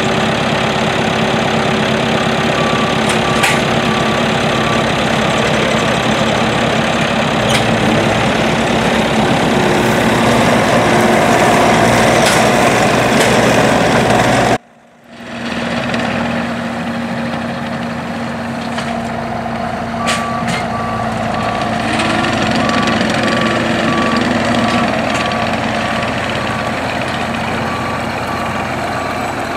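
A diesel compact track loader's engine runs under load.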